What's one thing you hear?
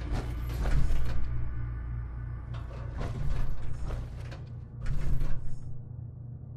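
Heavy metal footsteps clank and thud on a hard floor.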